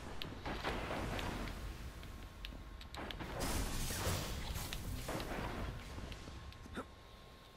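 A weapon clicks and clatters as it is swapped.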